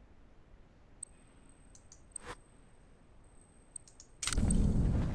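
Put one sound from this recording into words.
Short menu clicks tick a few times.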